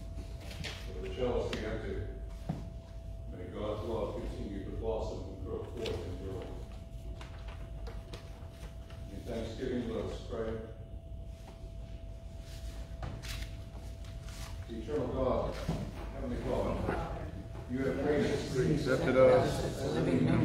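A man speaks calmly at a distance in a large echoing room.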